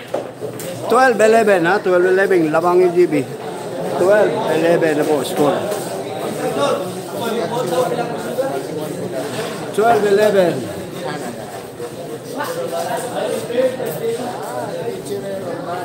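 A man talks loudly and with animation nearby.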